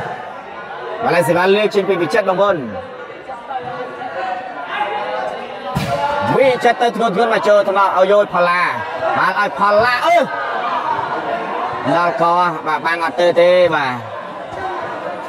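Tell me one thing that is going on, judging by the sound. Young men shout and cheer loudly.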